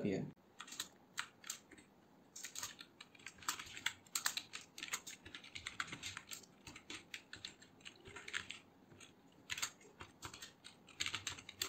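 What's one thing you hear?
Keys on a keyboard click rapidly in short bursts.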